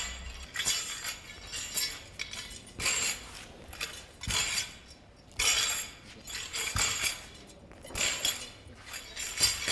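A sword swishes through the air in quick strokes.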